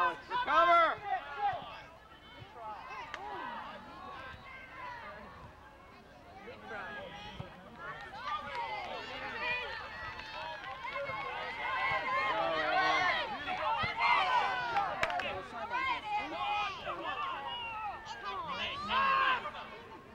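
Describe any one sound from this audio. A crowd of adult spectators shouts and cheers with animation outdoors.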